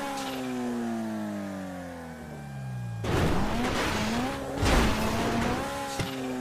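A car engine hums, its pitch slowly falling as the car rolls downhill.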